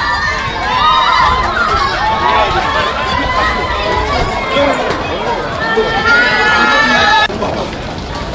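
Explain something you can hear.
Young women scream and shriek excitedly nearby.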